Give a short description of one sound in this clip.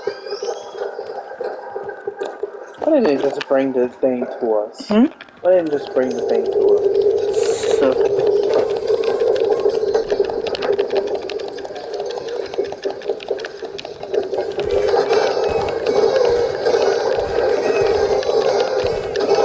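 A small cart rumbles and clatters along a wooden track.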